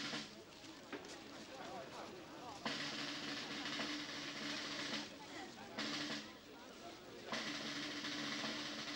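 A large crowd murmurs quietly outdoors.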